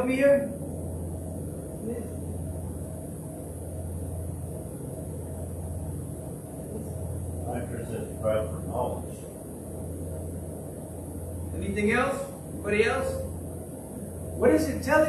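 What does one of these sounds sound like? A middle-aged man speaks into a microphone in short bursts with long pauses, in a room with some echo.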